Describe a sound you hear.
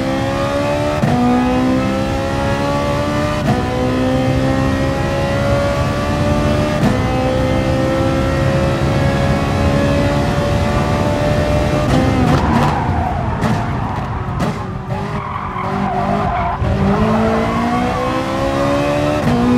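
A racing car engine roars and rises in pitch as it speeds up through the gears.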